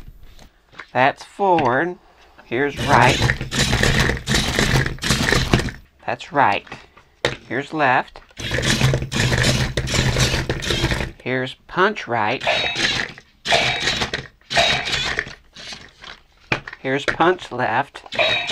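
A toy robot plays loud, warbling electronic sound effects.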